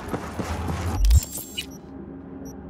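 A low whoosh sounds as a menu opens.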